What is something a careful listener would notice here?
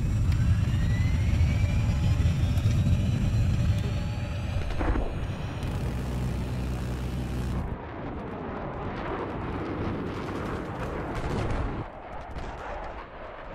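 Explosions boom and rumble below.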